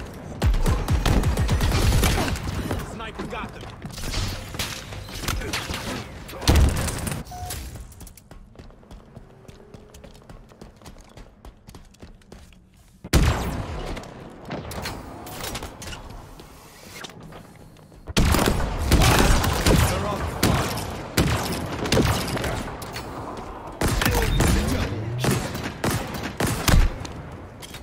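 Rapid gunfire crackles and bangs.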